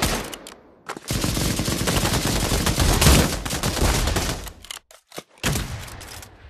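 A rifle fires a loud shot with a sharp crack.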